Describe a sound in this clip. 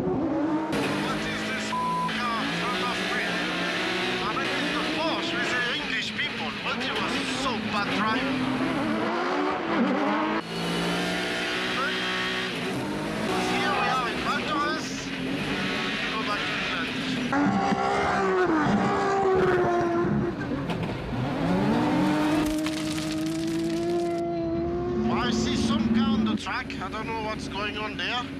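Car engines rev and whine as cars slide on snow.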